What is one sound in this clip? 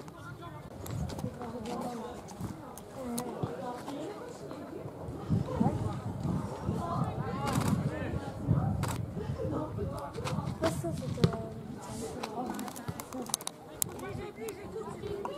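Young players shout to each other across an open field.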